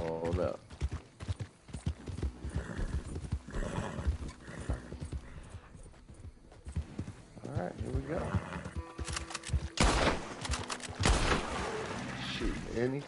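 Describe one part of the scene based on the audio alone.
Hooves pound steadily on soft ground as a horse gallops.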